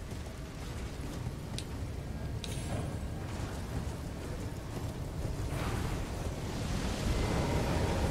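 A rider gallops on horseback over hard ground.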